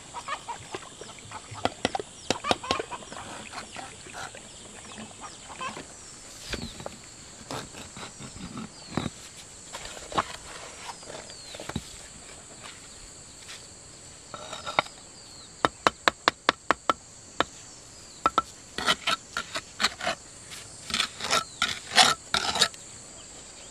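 Bricks knock against each other as they are set in place.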